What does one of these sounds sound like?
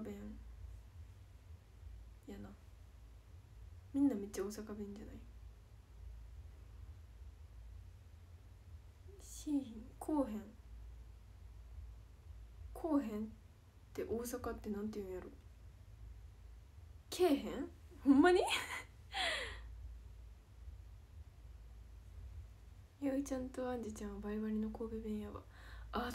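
A young woman speaks softly and haltingly, close to the microphone.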